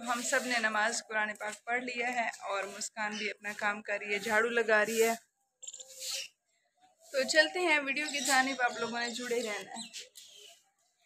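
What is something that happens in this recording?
A woman talks close by, calmly.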